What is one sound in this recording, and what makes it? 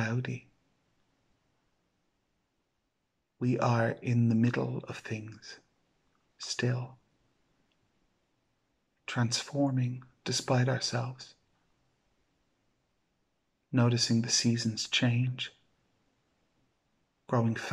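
A middle-aged man speaks calmly and slowly, close to the microphone, with long pauses.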